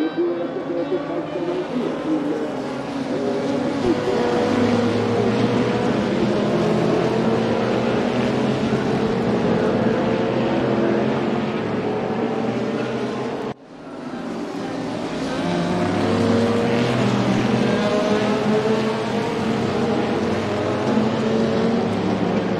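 Racing car engines roar loudly as a pack of cars speeds past, rising and falling in pitch.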